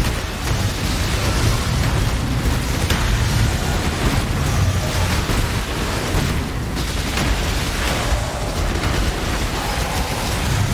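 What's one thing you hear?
Magic spells crackle and burst in rapid succession.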